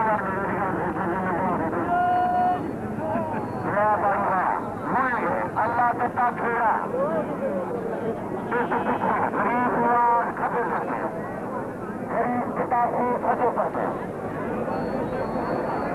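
A large outdoor crowd murmurs and shouts.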